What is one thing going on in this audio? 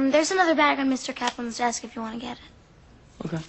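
A young girl sings out loudly, close by.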